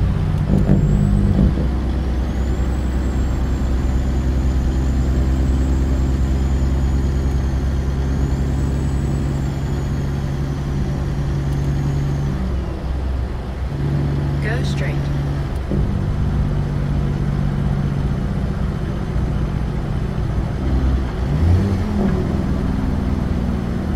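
A truck's diesel engine rumbles steadily from inside the cab.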